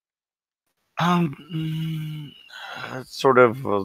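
Another man answers with animation over an online call.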